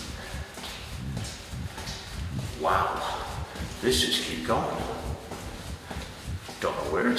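Footsteps crunch on a stony floor, echoing in a narrow tunnel.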